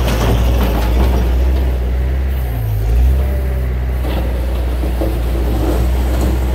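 A loader's diesel engine rumbles steadily close by.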